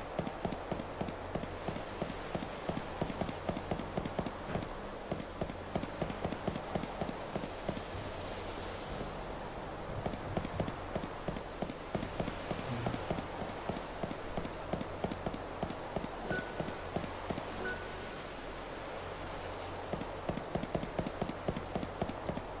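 Quick footsteps run over hard stone.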